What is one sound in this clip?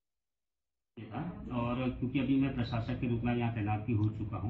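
A man speaks calmly and clearly into microphones close by.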